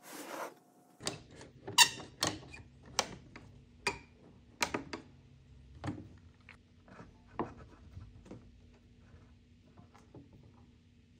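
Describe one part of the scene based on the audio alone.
A bar clamp clicks as it is tightened.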